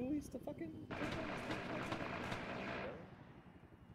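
A helicopter flies overhead.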